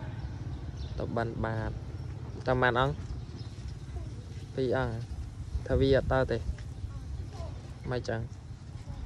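A young boy calls out in short, high, sung phrases close by.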